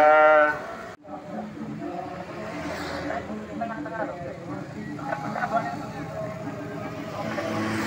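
Motorbike engines hum as they pass slowly.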